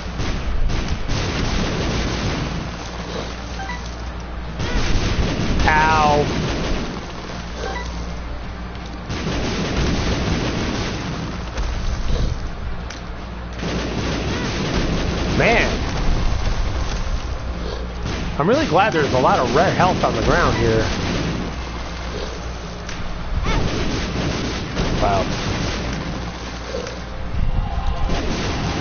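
A video game plays rapid popping shots and splatters.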